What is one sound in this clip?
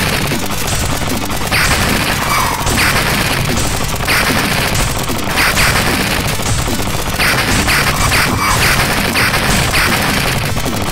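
Laser shots fire in rapid bursts.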